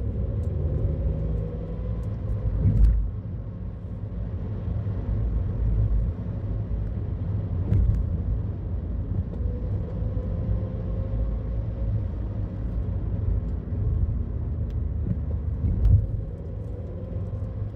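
Tyres rumble over a rough road.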